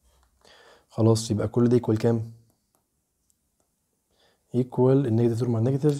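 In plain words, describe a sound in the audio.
A man speaks calmly and explains, close to a microphone.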